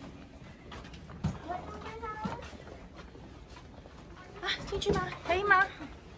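Footsteps patter on a hard floor.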